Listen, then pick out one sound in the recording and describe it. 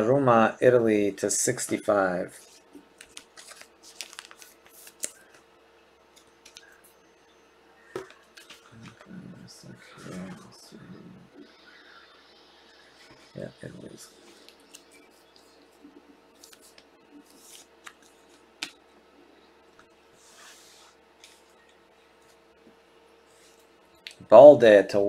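Trading cards rustle and click as hands handle them.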